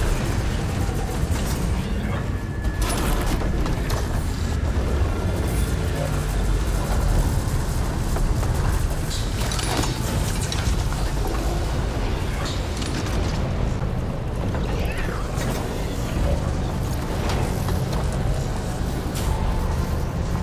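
A deep mechanical rumble drones steadily throughout.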